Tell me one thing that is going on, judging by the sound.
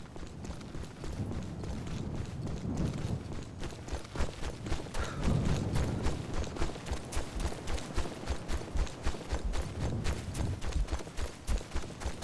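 Footsteps crunch quickly through dry brush and undergrowth.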